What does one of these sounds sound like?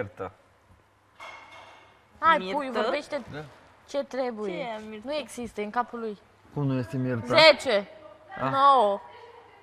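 A young woman talks casually nearby.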